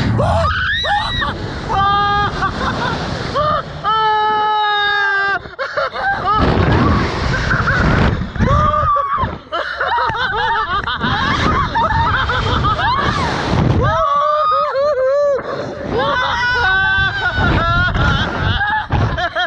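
A young woman screams and laughs close to the microphone.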